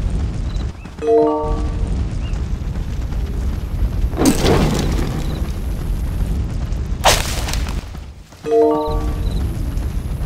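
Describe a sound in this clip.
A short bright chime rings out twice.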